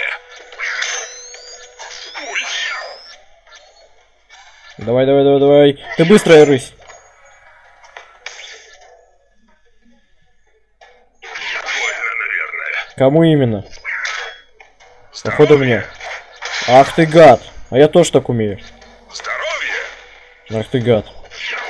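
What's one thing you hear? Electronic battle sounds clash and blast in bursts.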